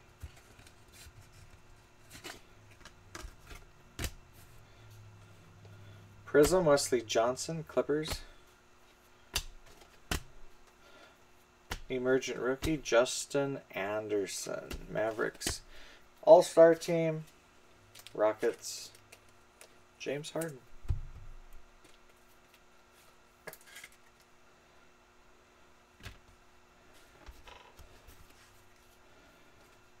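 Trading cards slide and click against each other in a pair of hands.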